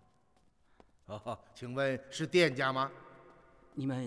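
A middle-aged man speaks up, calling out.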